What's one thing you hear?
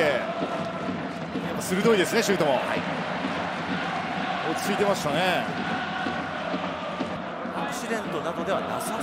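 A large crowd cheers and roars in a big stadium.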